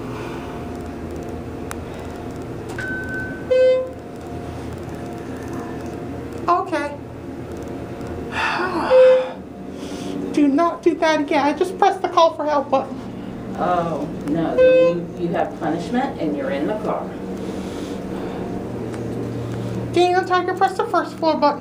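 An elevator hums steadily as it rides.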